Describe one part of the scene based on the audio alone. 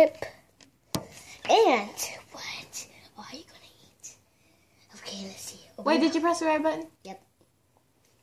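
A young child talks and laughs excitedly close by.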